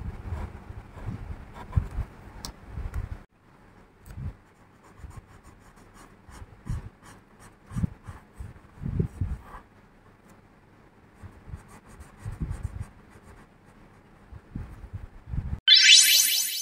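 A felt-tip marker squeaks and taps softly on paper.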